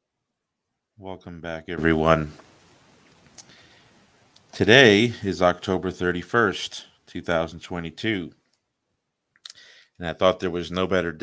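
A young man speaks calmly into a microphone, heard through an online call.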